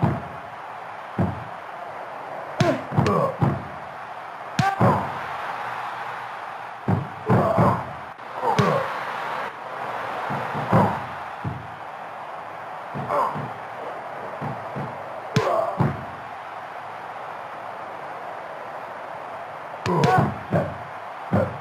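A crowd cheers steadily in the background.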